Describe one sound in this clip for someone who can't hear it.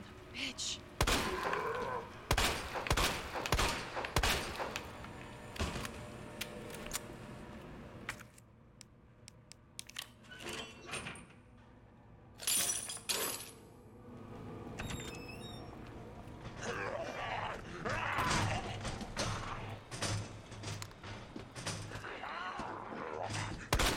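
Pistol shots bang loudly, one after another.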